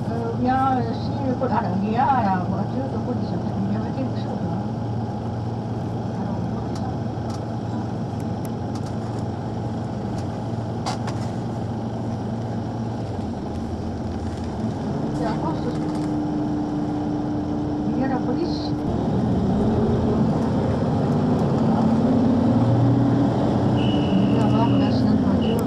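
A busy crowd murmurs and chatters outdoors.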